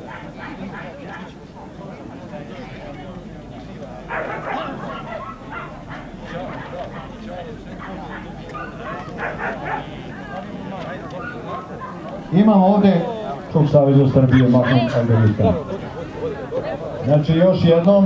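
Men and women chat in a crowd outdoors.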